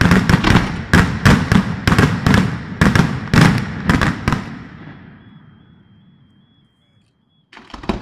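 Fireworks booms echo and rumble away.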